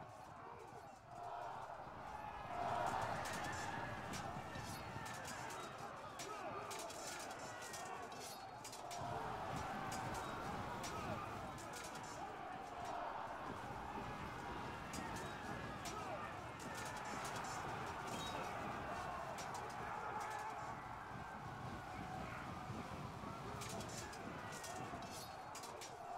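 Swords and weapons clash and clatter.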